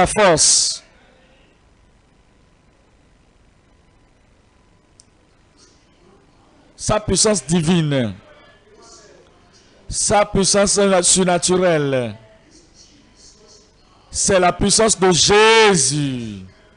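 A man prays loudly and fervently through a loudspeaker.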